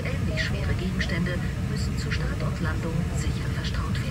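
A laptop lid clicks shut.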